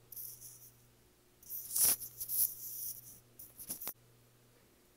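A knife scrapes and taps against a plate.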